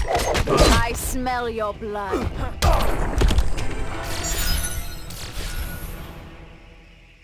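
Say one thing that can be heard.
Blows land and crash loudly in a fight.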